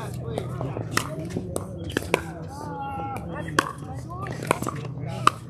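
Paddles pop sharply against plastic balls again and again.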